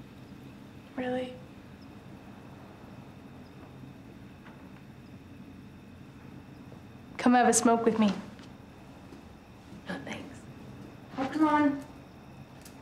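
A young woman speaks softly in short phrases, close by.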